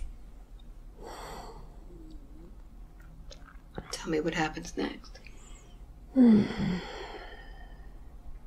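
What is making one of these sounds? An elderly woman groans and moans close by.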